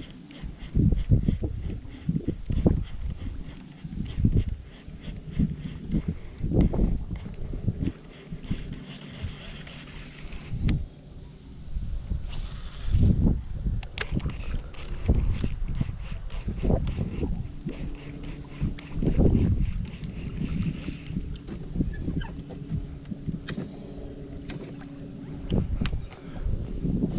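Water laps softly against the hull of a moving boat.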